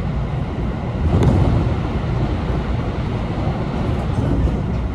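Another train rushes past close alongside.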